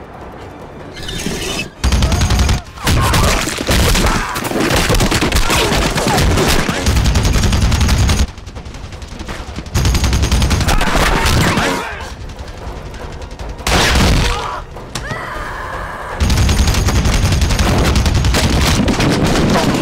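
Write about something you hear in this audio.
A man yells fiercely while firing.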